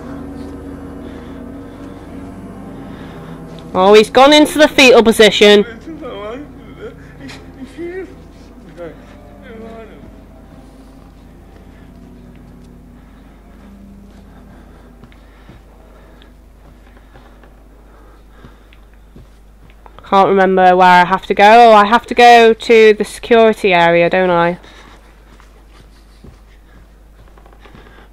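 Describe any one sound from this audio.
Footsteps thud slowly across a floor.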